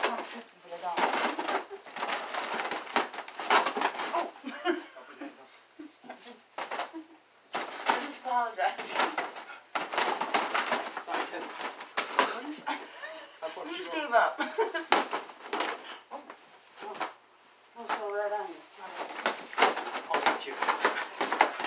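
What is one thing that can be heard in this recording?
Plastic tubs clatter and knock together.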